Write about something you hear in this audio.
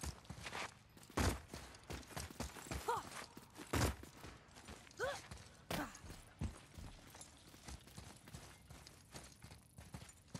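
Heavy footsteps thud and scrape on stone.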